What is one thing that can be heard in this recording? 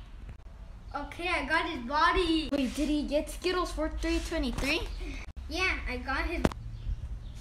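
A teenage boy talks and laughs close by.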